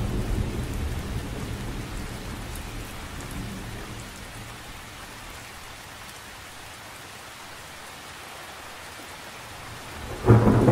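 Rain patters softly on a lake's surface.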